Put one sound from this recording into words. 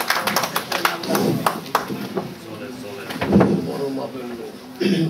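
A man speaks into a microphone through a loudspeaker, echoing in a room.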